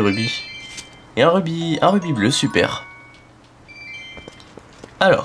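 A bright chiming jingle plays.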